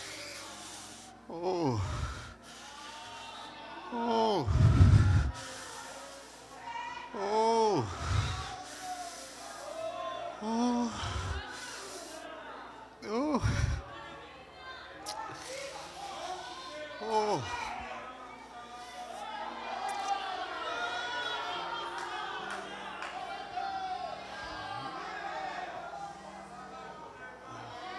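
A man preaches with animation through a microphone in a large echoing hall, his voice rising into loud, drawn-out cries.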